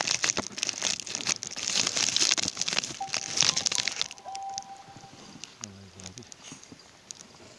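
Clothing rustles and scrapes right up close.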